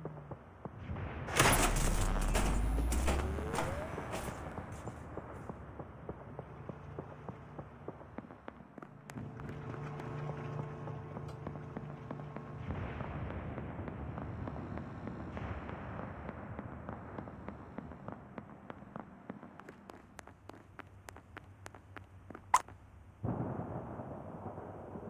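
Footsteps tap quickly as a game character walks.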